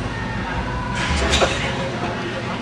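A man grunts and strains loudly.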